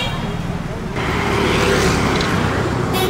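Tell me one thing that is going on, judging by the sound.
Traffic rumbles past nearby.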